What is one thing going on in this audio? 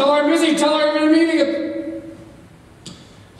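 A woman sings in a large hall.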